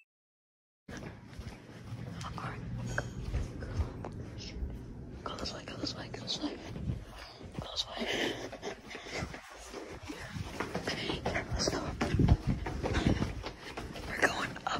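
Footsteps walk on a tiled floor.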